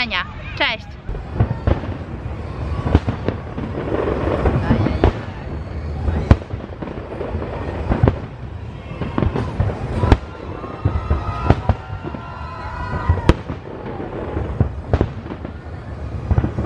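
Fireworks boom and crackle in the distance.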